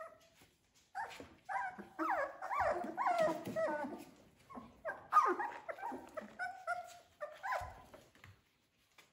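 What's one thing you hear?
Puppies whine and yelp in high voices.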